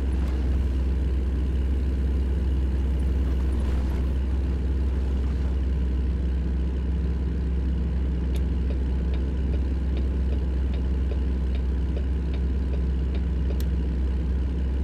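A truck engine rumbles steadily as it drives along a highway.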